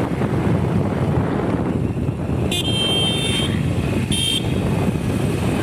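Wind and road noise rumble steadily from a moving vehicle.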